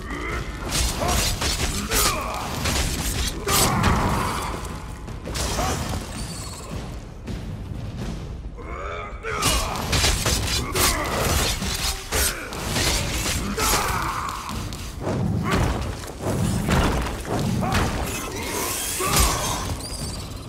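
Weapons strike and clash repeatedly in a fight.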